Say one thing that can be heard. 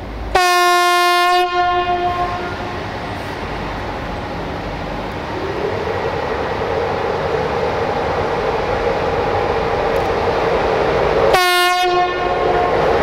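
A locomotive horn blasts loudly twice.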